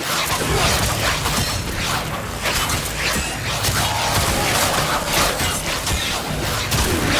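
Explosions boom and thud.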